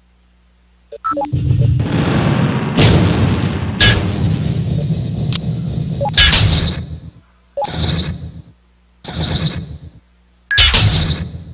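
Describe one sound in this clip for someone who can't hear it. Heavy war machines whir and clank as they move.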